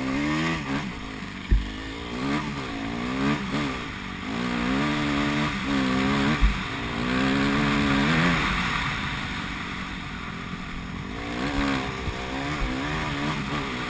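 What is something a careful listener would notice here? Tyres crunch over a sandy dirt track.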